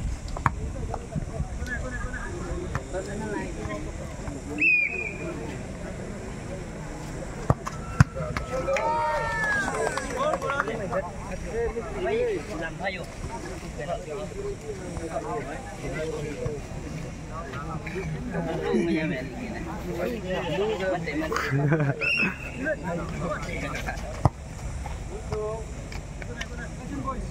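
A crowd of young men and boys shouts and cheers outdoors.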